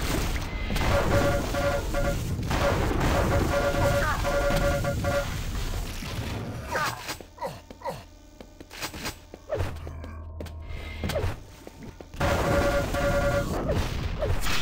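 A game weapon fires a steady crackling electric beam in bursts.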